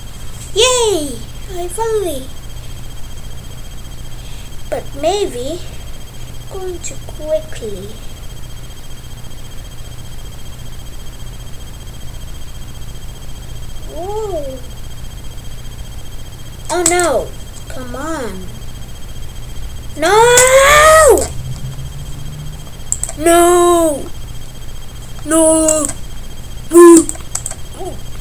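A young boy makes short, high, squeaky sounds with his voice close by, in bursts with pauses between them.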